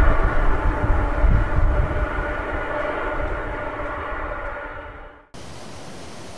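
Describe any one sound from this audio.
Jet engines of a twin-engine airliner whine as it rolls on a runway.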